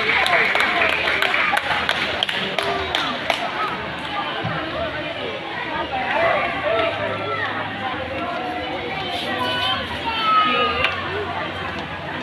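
A crowd of adults and children chatters throughout a hall with a slight echo.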